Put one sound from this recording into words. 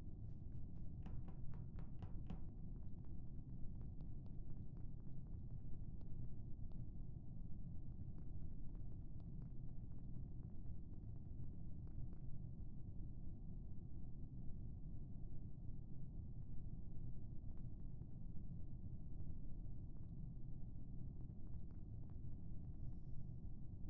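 Light footsteps patter steadily as a game character walks.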